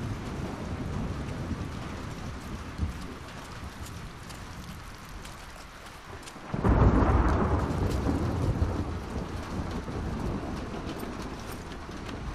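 A man talks quietly into a headset microphone.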